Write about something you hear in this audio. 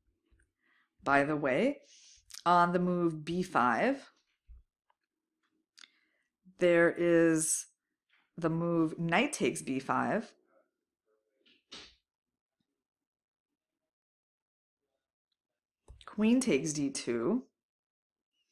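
A young woman speaks calmly and thoughtfully into a microphone, with pauses.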